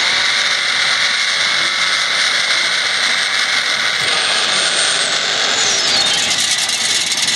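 A car engine roars at high revs.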